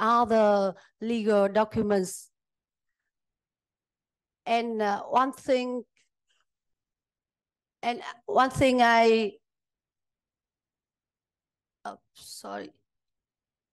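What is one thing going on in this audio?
A woman speaks calmly into a microphone in a large room, in short phrases with pauses.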